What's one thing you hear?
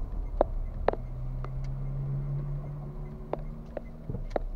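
Another car drives past close by.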